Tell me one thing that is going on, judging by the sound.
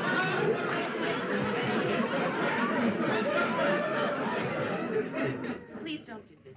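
A middle-aged man laughs heartily.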